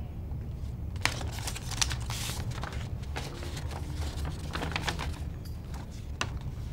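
Paper rustles as a man handles a letter.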